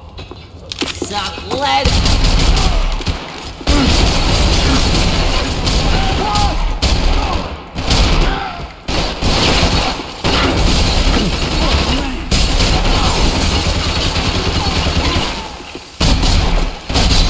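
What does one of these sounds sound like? A pistol fires sharp, loud shots.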